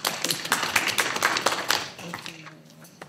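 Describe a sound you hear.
People applaud in a room.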